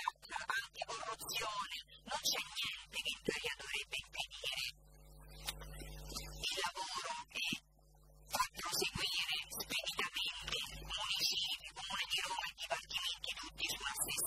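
A young woman speaks with animation into a desk microphone.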